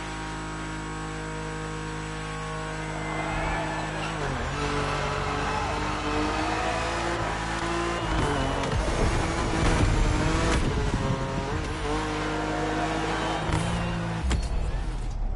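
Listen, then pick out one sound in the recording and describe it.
A racing car engine roars at high speed, rising and falling in pitch through gear changes.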